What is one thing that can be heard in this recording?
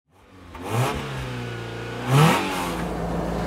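An engine revs up sharply twice.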